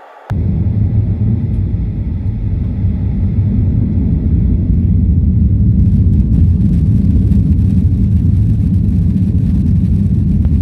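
A jet airliner's engines roar steadily, heard from inside the cabin.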